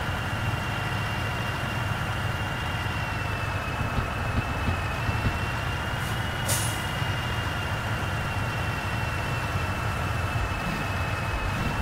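A heavy truck engine drones steadily at cruising speed.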